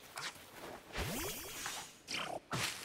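A bright magical chime shimmers.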